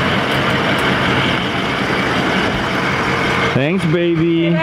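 A pickup truck drives past with its engine running.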